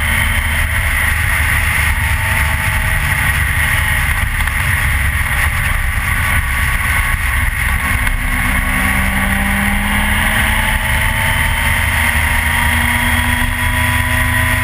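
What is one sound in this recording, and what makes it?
A motorcycle engine hums steadily, slowly rising and falling in pitch.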